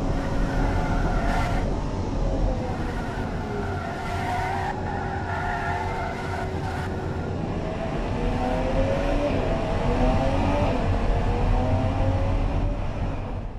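A racing car engine revs up and down through gear changes.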